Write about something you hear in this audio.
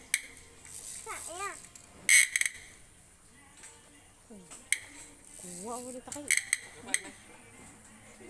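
A young child calls out nearby in short, high cries.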